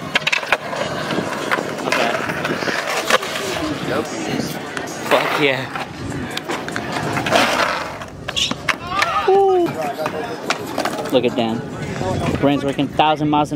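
Skateboards clack and slap on concrete.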